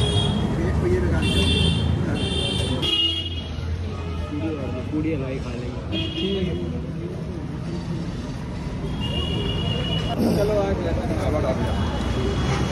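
Several men talk nearby over an outdoor crowd.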